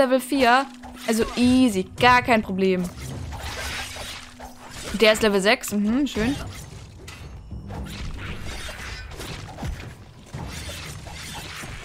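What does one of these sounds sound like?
Blades swish and strike in a fast fight.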